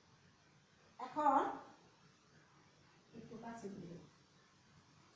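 A woman speaks in short phrases nearby.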